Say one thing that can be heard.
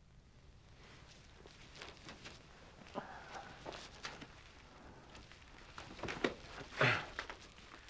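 Footsteps shuffle on a mat-covered floor.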